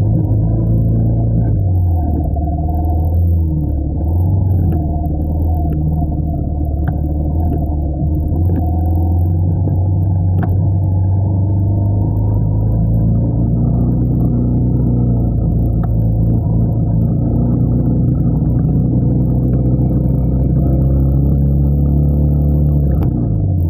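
Motorcycle engines hum steadily close by.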